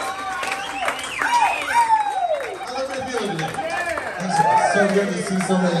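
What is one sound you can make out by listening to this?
A crowd cheers and whoops.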